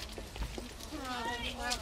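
A woman talks nearby outdoors.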